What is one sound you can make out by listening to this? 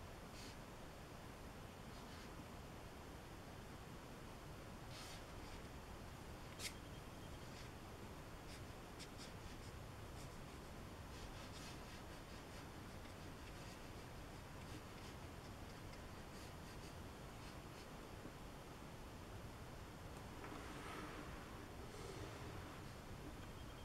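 A brush taps and scrapes softly on paper.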